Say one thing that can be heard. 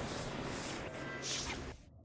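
Fire roars in a burst of flame.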